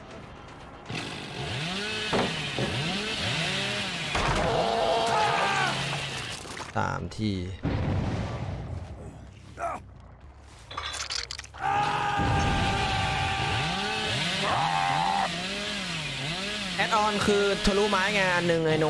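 A chainsaw revs loudly, its engine rising and falling.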